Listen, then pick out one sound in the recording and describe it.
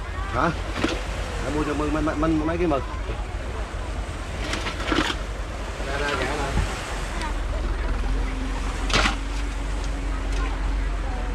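A fishing net rustles as it is pulled from a boat.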